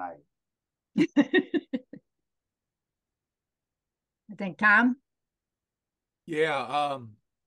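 An older woman speaks with animation through an online call.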